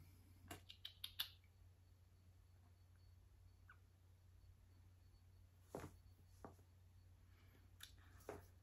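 Paper rustles and taps as cards are handled close by.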